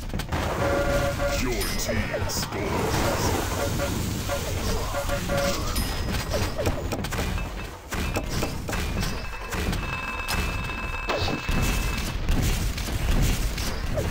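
An electric beam weapon crackles and buzzes.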